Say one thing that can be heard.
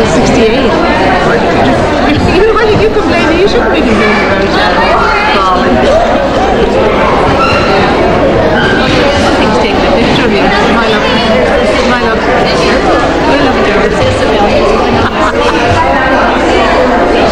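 A crowd of people chatter all around in a room.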